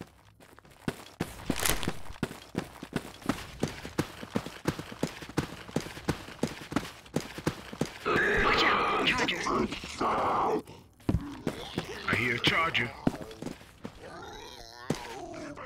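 Footsteps crunch steadily over dry ground.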